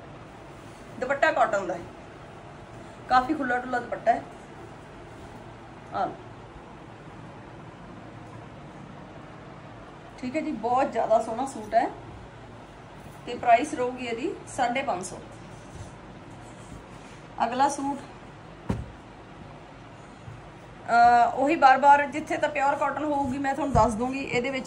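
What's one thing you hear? A middle-aged woman speaks calmly and close by, in short bursts.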